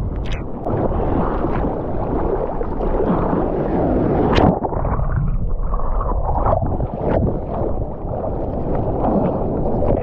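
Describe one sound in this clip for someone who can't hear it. Water splashes around a surfboard as a surfer paddles with the hands.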